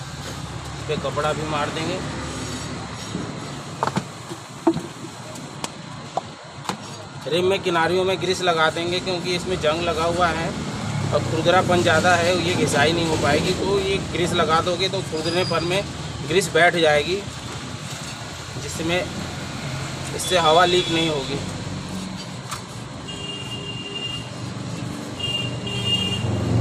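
A metal wheel rim clinks and scrapes as it is handled.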